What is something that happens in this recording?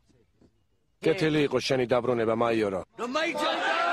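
A man speaks loudly to a crowd.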